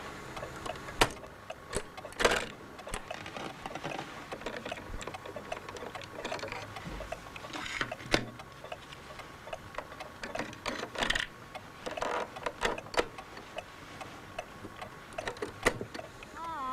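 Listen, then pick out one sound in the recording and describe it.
Buttons on a cassette deck click down.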